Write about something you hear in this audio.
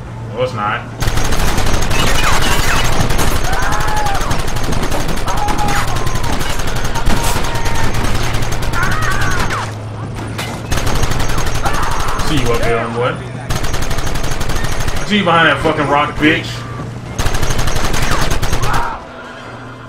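A machine gun fires in long rapid bursts.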